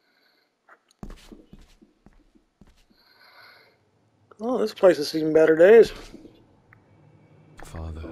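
Footsteps scuff slowly on a gritty stone floor.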